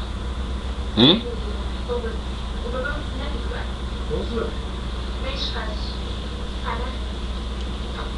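A toddler babbles softly.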